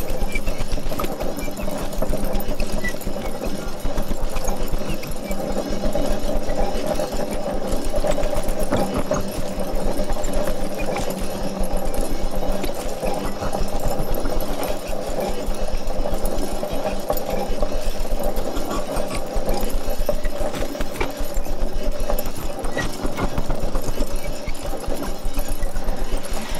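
Electronic music drones steadily with a low pulsing hum.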